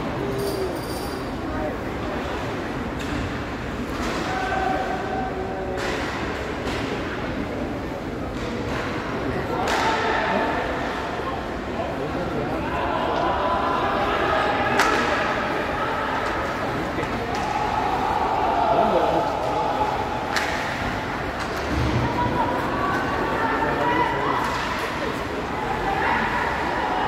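A crowd murmurs and shouts in a large echoing rink.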